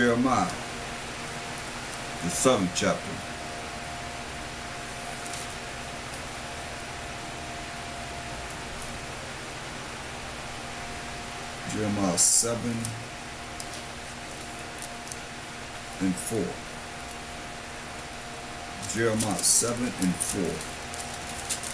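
A man speaks calmly in short bursts close to a microphone, with long pauses.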